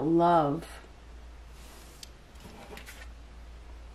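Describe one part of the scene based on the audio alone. A playing card slides softly across a cloth.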